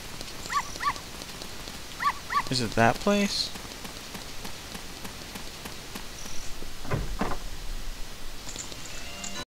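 Light footsteps patter quickly on stone paving.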